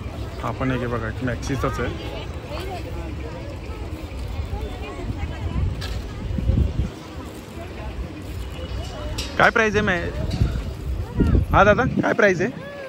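Men and women chatter nearby in a lively crowd.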